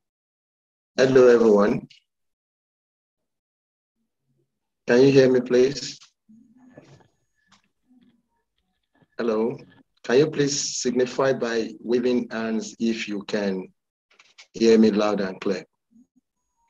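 A man speaks calmly through an online call, in bursts with pauses.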